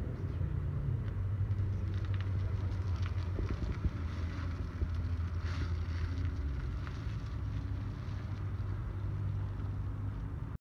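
A minivan engine hums as it drives slowly away across a parking lot.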